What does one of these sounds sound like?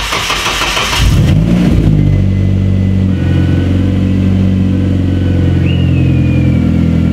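A car engine rumbles at a steady idle.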